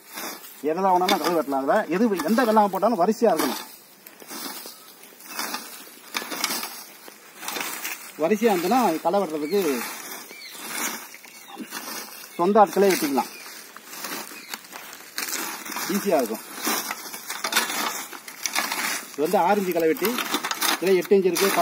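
A wheeled hand plough scrapes and crunches through dry soil.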